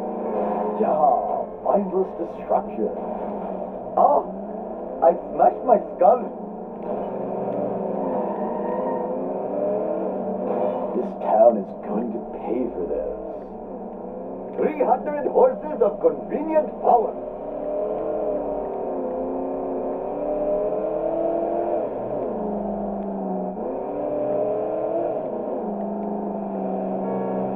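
A car engine roars steadily as it speeds along.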